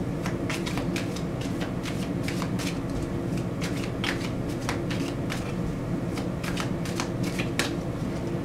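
Cards riffle and slap softly as a deck is shuffled by hand.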